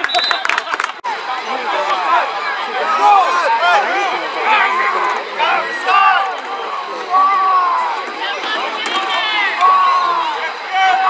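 A crowd of spectators and players chatters and calls out.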